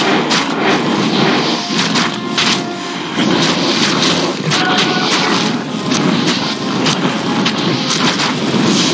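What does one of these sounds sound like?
Weapons clash and strike repeatedly in a battle.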